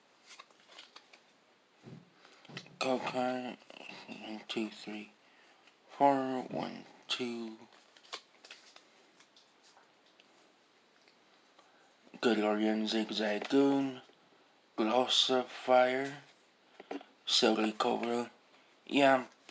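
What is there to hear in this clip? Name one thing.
Trading cards rustle and slide as they are flipped through by hand.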